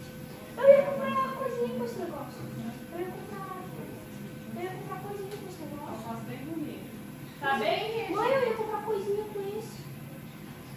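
A boy talks nearby.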